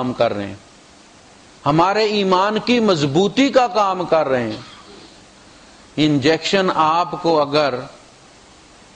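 A man recites in a melodic chanting voice through a microphone, in a slightly echoing room.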